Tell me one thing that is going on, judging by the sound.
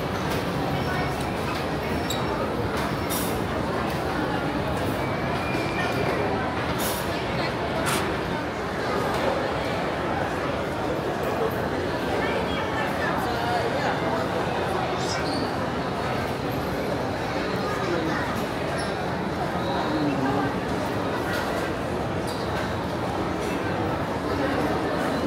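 A crowd of men and women chatter steadily in a large, echoing hall.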